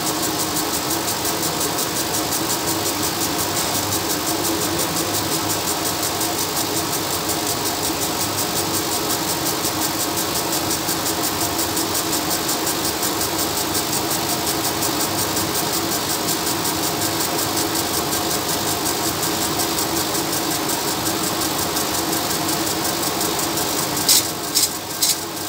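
A laser engraving machine buzzes steadily with a rapid pulsing hiss.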